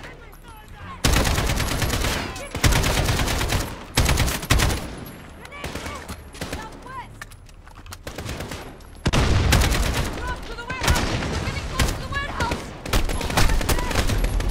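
Rapid bursts of rifle fire crack loudly.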